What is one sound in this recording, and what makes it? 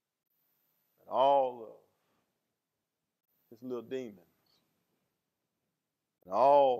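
A man preaches into a microphone with emphatic, drawn-out phrases.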